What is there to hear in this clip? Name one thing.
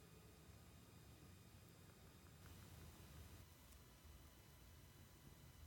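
A bath bomb fizzes and bubbles softly in water.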